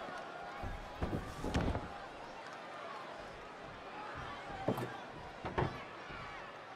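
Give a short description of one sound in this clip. Heavy thuds of bodies and a metal ladder bang on a wrestling ring.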